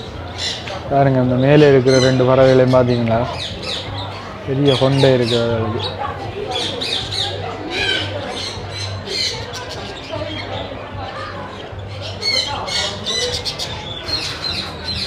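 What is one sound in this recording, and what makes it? Cockatiels chirp and squawk close by.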